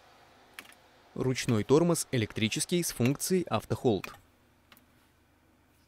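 A button clicks softly.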